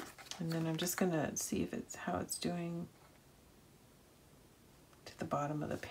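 A small roller clicks as it rolls along paper.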